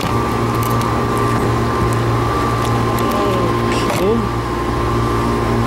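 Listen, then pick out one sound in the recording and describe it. A small pump motor hums steadily close by.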